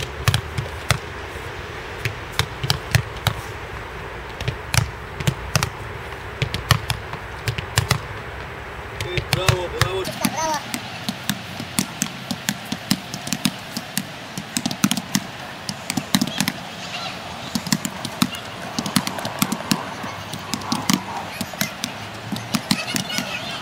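A football is kicked repeatedly with sharp thuds.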